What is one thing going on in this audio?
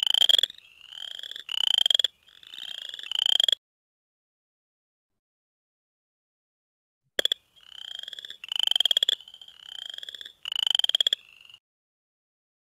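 Recorded frog calls play through a speaker as rapid, rising trills.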